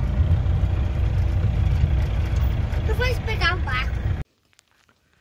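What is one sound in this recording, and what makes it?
A vehicle drives along a bumpy gravel road with a low rumble.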